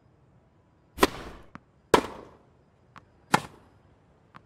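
A tennis racket strikes a ball several times with sharp pops.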